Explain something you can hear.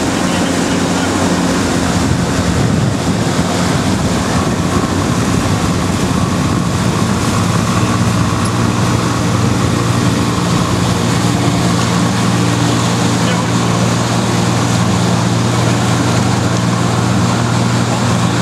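A motorboat engine drones steadily close by.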